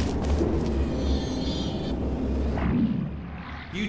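A low electronic hum drones steadily.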